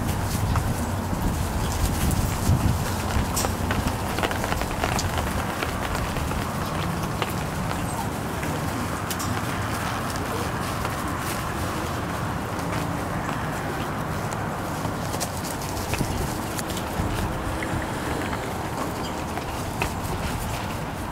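Puppies scuffle and rustle through dry wood shavings.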